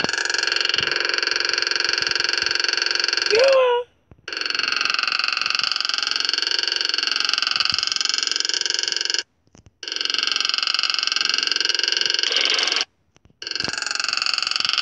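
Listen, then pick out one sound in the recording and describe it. A motorbike engine drones steadily, cutting out briefly a few times.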